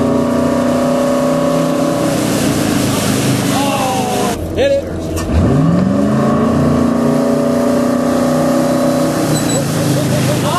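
Water rushes and splashes in a boat's wake.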